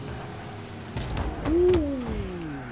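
A ball thuds against a car.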